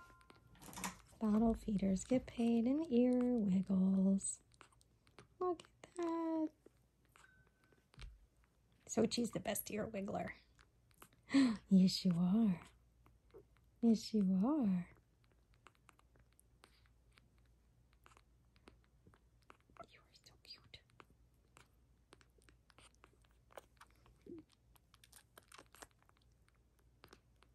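A kitten suckles from a bottle with soft, wet smacking sounds.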